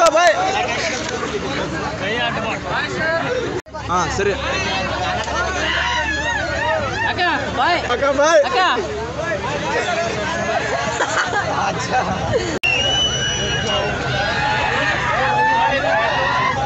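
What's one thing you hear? A crowd of young men chatter and shout with animation all around.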